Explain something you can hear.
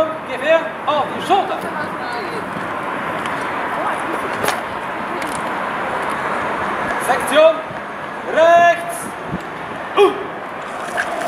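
A man shouts drill commands loudly outdoors.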